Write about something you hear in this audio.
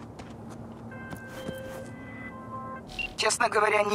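A phone rings with short electronic beeps.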